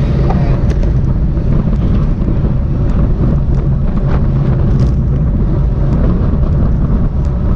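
Strong wind rumbles and buffets loudly.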